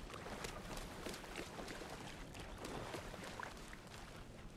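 A young man speaks quietly into a microphone.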